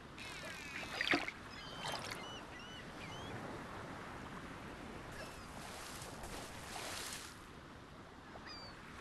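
A dolphin chirps and whistles in short high calls.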